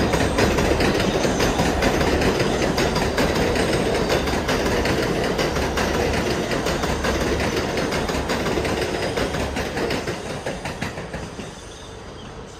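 A subway train rumbles and clatters past loudly, then fades away.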